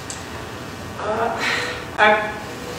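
A man speaks briefly into a microphone in an echoing room.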